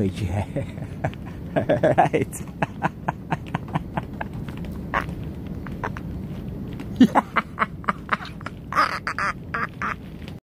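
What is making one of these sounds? A middle-aged man laughs heartily close by.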